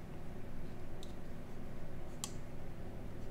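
A folding knife blade snaps shut with a sharp metallic click.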